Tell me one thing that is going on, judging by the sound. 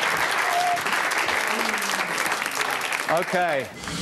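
A studio audience claps and cheers loudly.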